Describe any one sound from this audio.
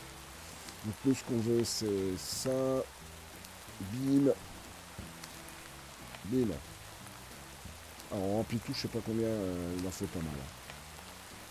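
A middle-aged man talks calmly into a microphone, close by.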